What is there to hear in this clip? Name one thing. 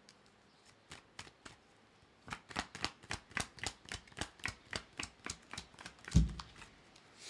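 Fingers tap and click on a small object close to a microphone.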